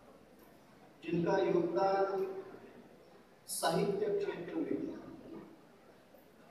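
A man speaks into a microphone through a loudspeaker, in a large echoing space.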